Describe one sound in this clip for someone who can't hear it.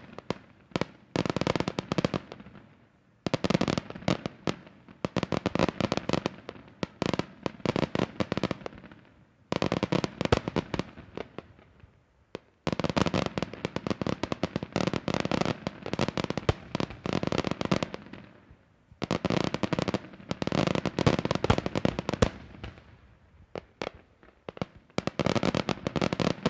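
Rapid firecracker bursts crackle and bang loudly in quick volleys overhead.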